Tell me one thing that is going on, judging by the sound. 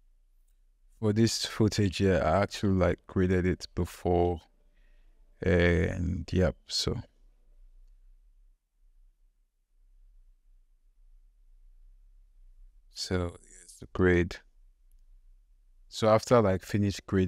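A young man talks calmly and casually into a nearby microphone, with pauses.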